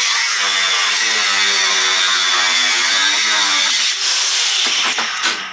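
An angle grinder whines loudly as it grinds metal.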